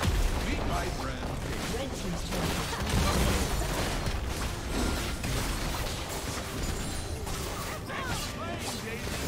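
Magic blasts and clashing weapons crackle rapidly in a video game battle.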